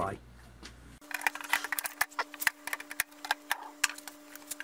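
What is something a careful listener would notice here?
Small metal parts click and tap against a metal casing.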